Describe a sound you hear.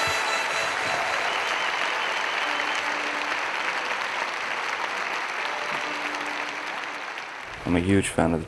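A crowd cheers and applauds in a large echoing hall.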